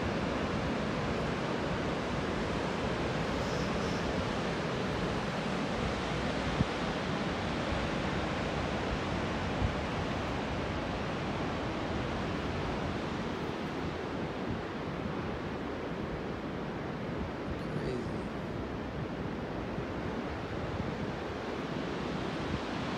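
Waves crash and roar against rocks far below.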